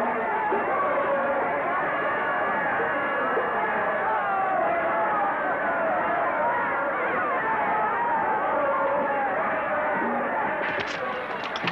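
A crowd of men and women sings and cheers loudly.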